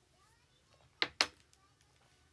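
A hair straightener clicks shut.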